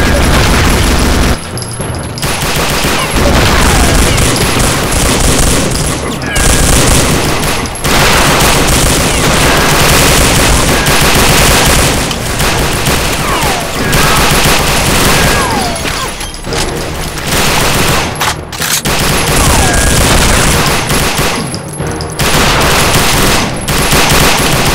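Enemies grunt and cry out as they are hit.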